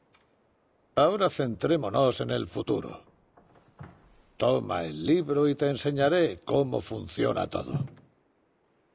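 A young man speaks calmly and close.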